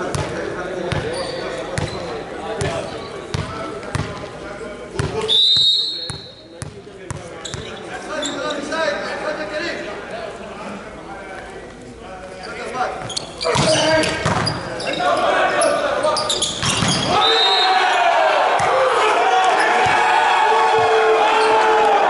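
A volleyball is struck again and again in a large echoing hall.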